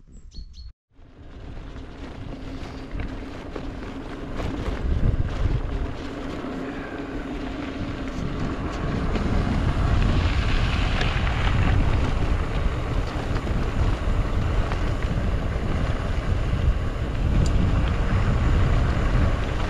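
Wind rushes loudly across the microphone.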